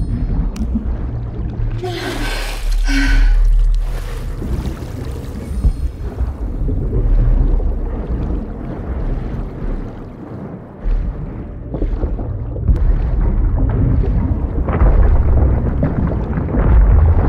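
Air rushes loudly past a falling body.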